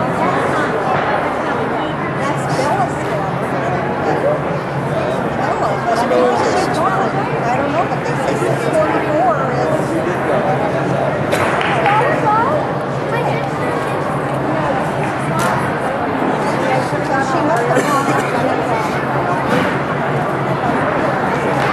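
Many girls and women chatter in a large echoing hall.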